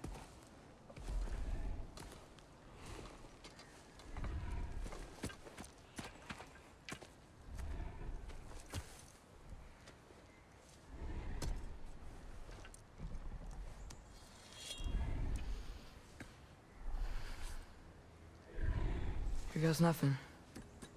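A large animal breathes slowly and heavily.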